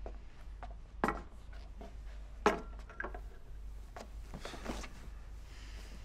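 A young woman sobs quietly nearby.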